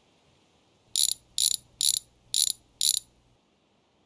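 A power wrench whirs in short repeated bursts on wheel bolts.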